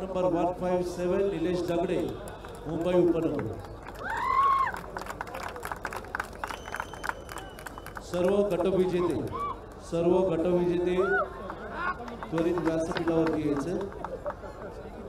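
A man announces loudly over a loudspeaker in a large hall.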